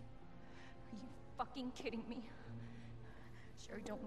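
A young woman exclaims in anger and disbelief, close by.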